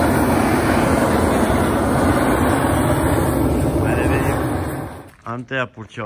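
A gas torch roars loudly and steadily.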